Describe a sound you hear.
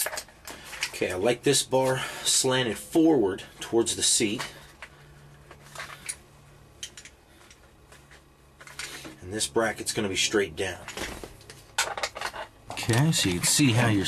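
A man speaks calmly close by, explaining.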